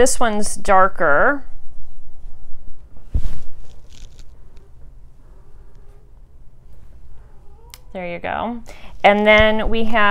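A woman talks close to the microphone, with animation.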